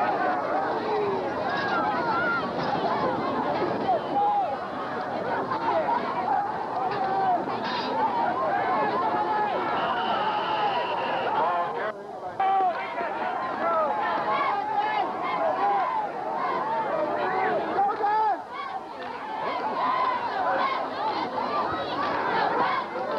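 A large crowd of spectators cheers and chatters outdoors.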